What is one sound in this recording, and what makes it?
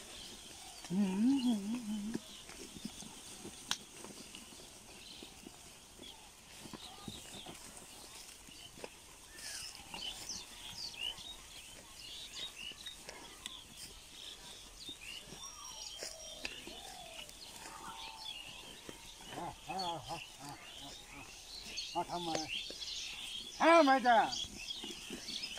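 A man calls out loudly to the animals.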